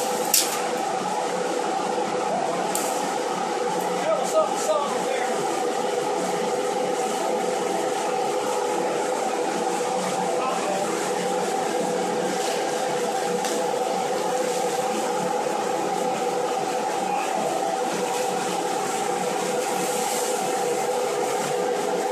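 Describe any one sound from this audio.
Foam pellets rustle and hiss through a flexible hose.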